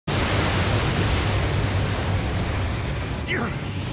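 A loud explosion roars and rumbles.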